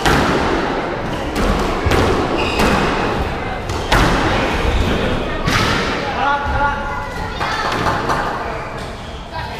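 A squash ball smacks sharply off the walls in a fast rally.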